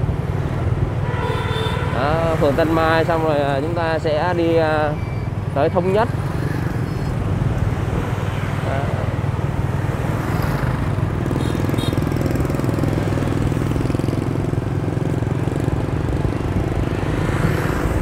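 Wind rumbles steadily against the microphone on a moving motorbike.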